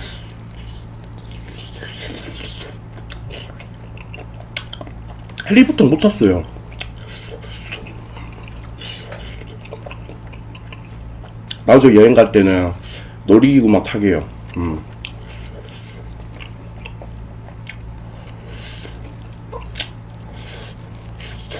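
A man chews a fried chicken drumstick close to a microphone.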